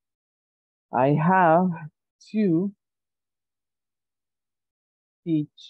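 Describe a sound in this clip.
A man speaks slowly and clearly over an online call, pausing between words.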